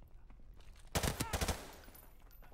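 Gunfire cracks loudly in a video game.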